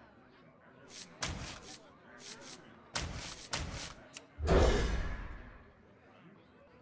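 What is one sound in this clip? Cards are replaced with quick whooshing and chiming game effects.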